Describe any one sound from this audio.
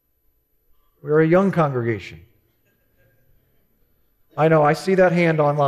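A man speaks calmly through a headset microphone, pausing between phrases.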